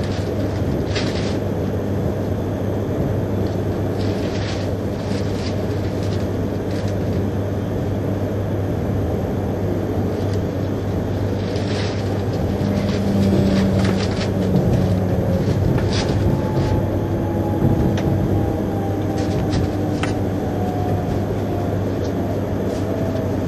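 A train's wheels click over rail joints.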